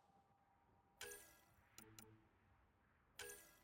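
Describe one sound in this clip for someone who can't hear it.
A game menu chimes with short, bright electronic tones.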